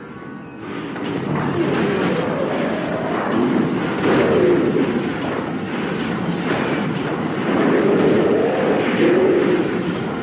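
Hits land with sharp impacts.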